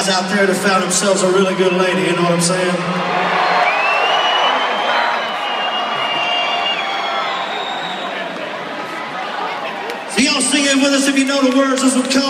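A man sings through loudspeakers in a large venue.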